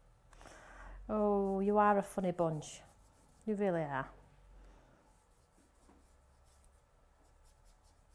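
A paintbrush strokes softly across paper.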